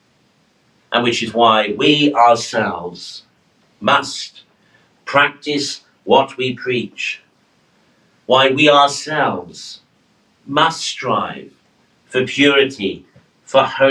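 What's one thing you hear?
A middle-aged man speaks slowly and solemnly into a nearby microphone.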